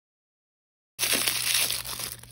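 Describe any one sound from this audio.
Tissue paper crinkles and rustles close by.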